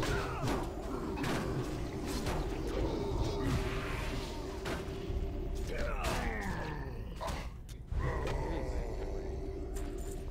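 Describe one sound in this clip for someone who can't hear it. Weapons clash and strike in a fast melee fight.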